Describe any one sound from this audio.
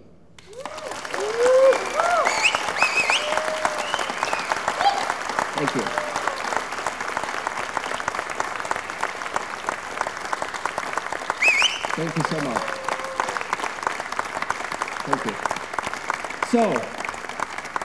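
People in an audience cheer and whoop.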